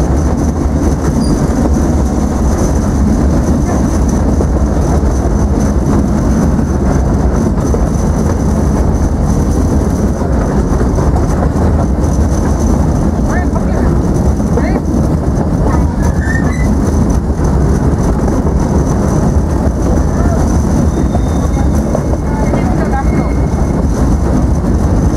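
A small open train rumbles steadily along its track.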